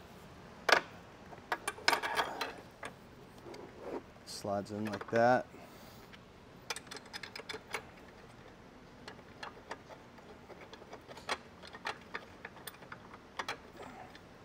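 Plastic parts click and clack close by.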